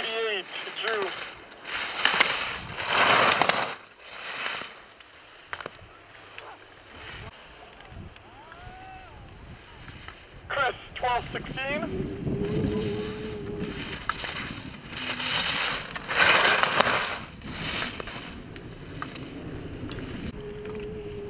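Skis scrape and hiss across hard snow in quick turns.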